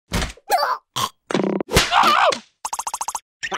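A small cartoon creature shouts in a squeaky, high voice.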